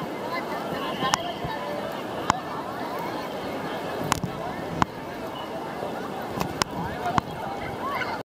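A large crowd chatters in the distance outdoors.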